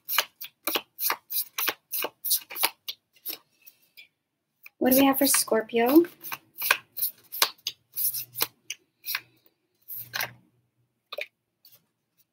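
Cards are shuffled with quick, crisp riffling clicks close to a microphone.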